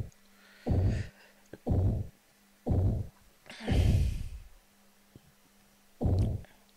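Deep game sound effects thud one at a time, about once a second, as a score is counted up.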